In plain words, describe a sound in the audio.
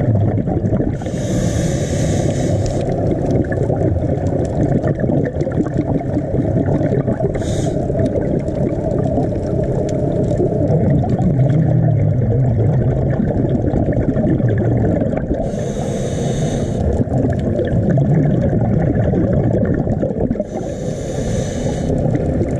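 Air bubbles from a diver's breath burst and gurgle now and then.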